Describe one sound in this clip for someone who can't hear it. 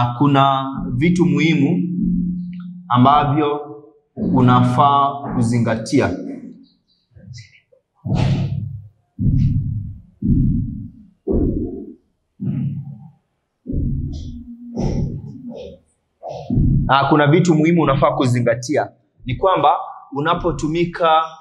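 A young man speaks clearly and steadily, close by.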